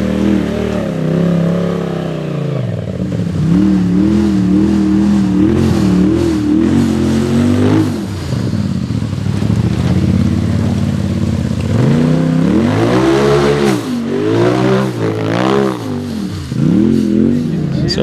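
An engine roars and revs up and down throughout.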